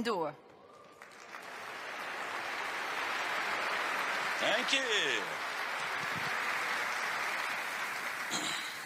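A large crowd applauds steadily in a big hall.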